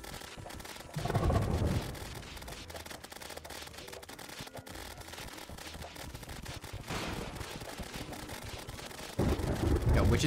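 Video game explosions boom with deep rumbles.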